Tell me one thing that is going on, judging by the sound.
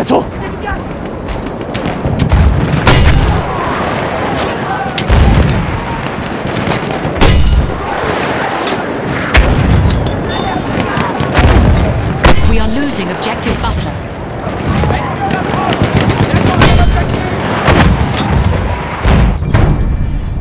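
Gunfire crackles in sharp bursts.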